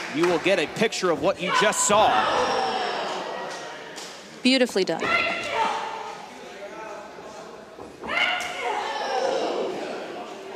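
A crowd cheers and shrieks in a large echoing hall.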